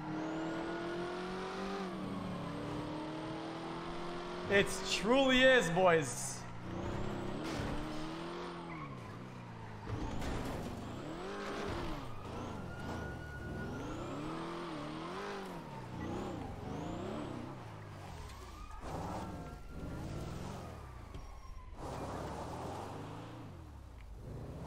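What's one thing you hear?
A car engine revs and whines, rising and falling in pitch.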